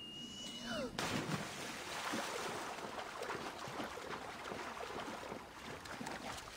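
Water splashes and swishes as a figure wades through it.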